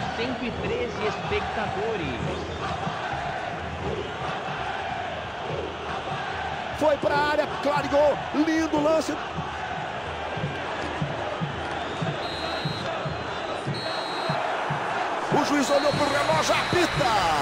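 A large crowd roars and chants in an open stadium.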